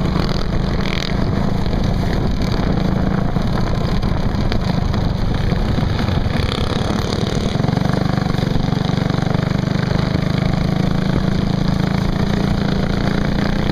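Other small go-kart engines buzz nearby.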